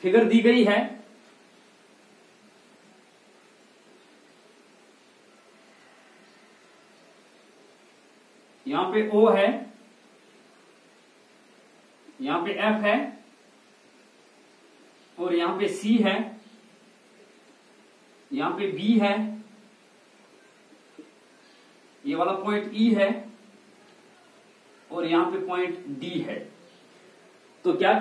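A young man speaks calmly in short phrases, as if teaching, with pauses between.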